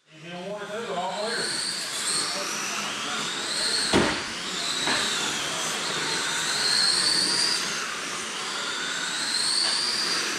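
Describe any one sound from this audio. Small electric motors whine at high pitch, rising and falling as remote-control cars race around.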